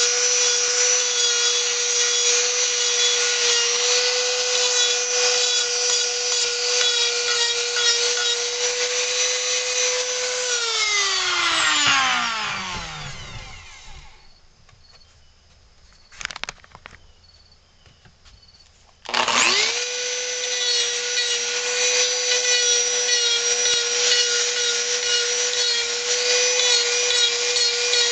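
A rotary tool bit grinds against wood.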